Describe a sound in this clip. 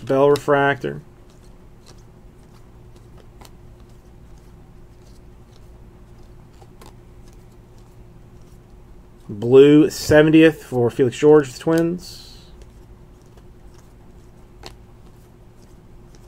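Trading cards rustle and slide against each other as they are flipped through.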